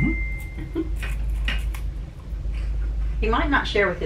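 A man crunches on a crisp snack.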